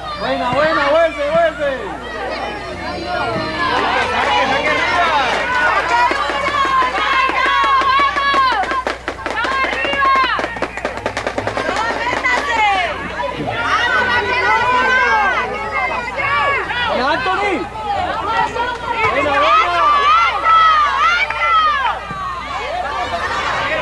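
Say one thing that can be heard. Children shout and call out excitedly nearby, outdoors.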